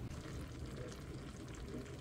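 Seasoning patters from a shaker onto food.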